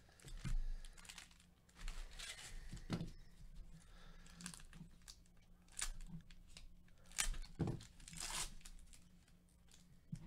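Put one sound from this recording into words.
Foil wrappers crinkle and rustle in gloved hands.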